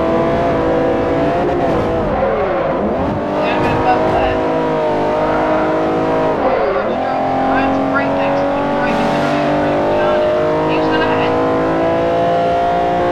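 A racing car engine roars loudly, revving up and down through gear changes.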